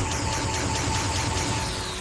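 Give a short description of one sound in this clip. A sci-fi blaster fires with a sharp electronic zap.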